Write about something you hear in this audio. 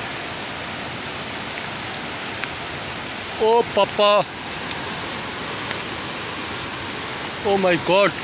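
A swollen, flooded river roars and churns.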